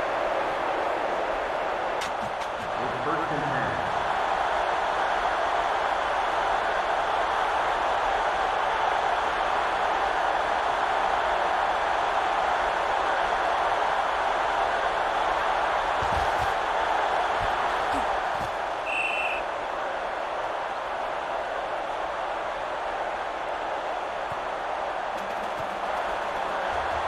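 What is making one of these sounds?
A crowd roars steadily in a stadium.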